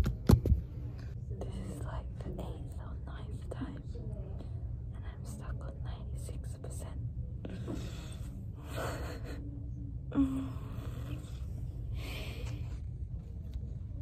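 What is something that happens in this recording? A young woman speaks quietly and close by.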